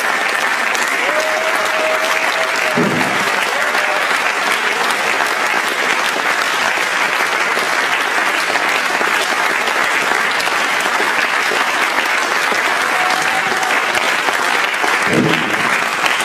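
An audience claps and applauds steadily.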